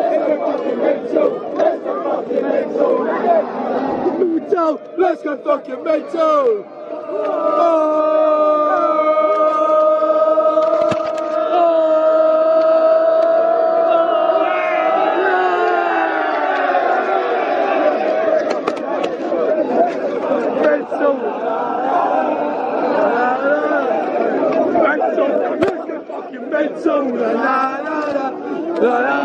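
A large crowd of young men sings and chants loudly close by.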